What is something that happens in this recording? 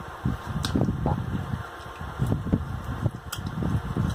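A woman chews and smacks her lips close to the microphone.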